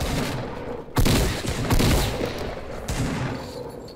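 Gunshots ring out in quick, loud bursts.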